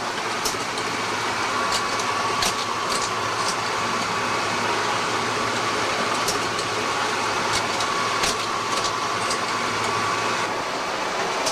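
A fax machine hums steadily.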